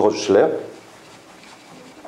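An eraser wipes across a whiteboard.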